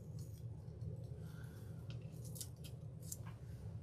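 Tape crinkles and peels off a sheet of stiff paper.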